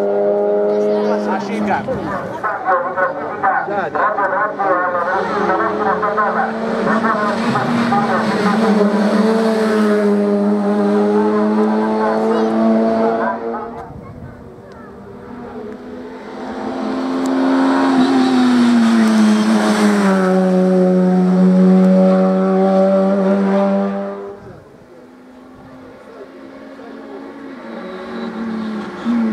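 A racing car engine roars loudly, revving high and dropping as it speeds by.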